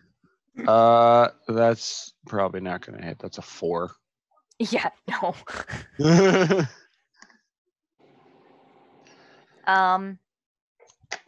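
Several men talk and laugh with animation over an online call.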